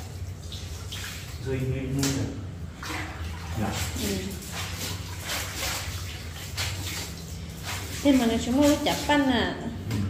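Wet clothes slosh and splash in a plastic tub of water as they are washed by hand.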